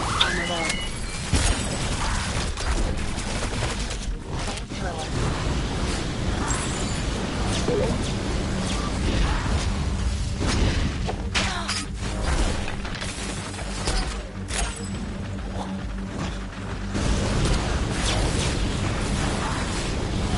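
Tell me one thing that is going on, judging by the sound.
Rapid gunfire rattles continuously.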